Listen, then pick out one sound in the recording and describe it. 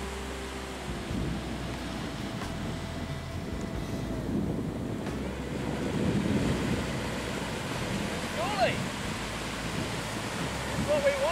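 Wind blows over an open beach.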